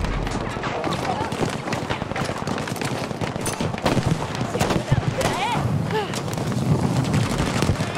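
Gunshots crack and pop in rapid bursts.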